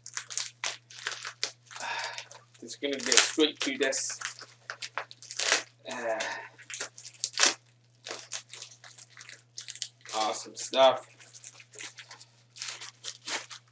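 Plastic wrapping crinkles and tears as it is peeled off.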